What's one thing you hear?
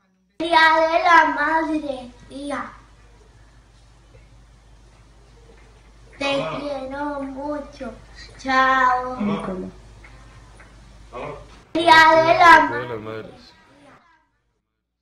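A boy speaks with animation over an online call.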